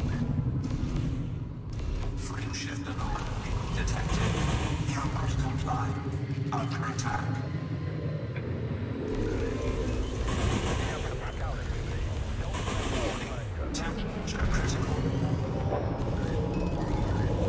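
A spaceship engine hums low and steadily.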